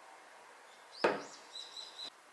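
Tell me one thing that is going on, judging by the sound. A plastic cup is set down on a table with a knock.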